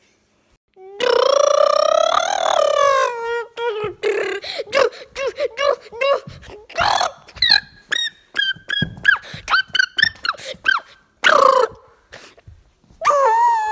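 An electronic toy chirps and babbles in a high, squeaky voice.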